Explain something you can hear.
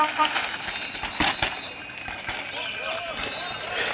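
A bicycle rattles and clanks as it bumps over rocks.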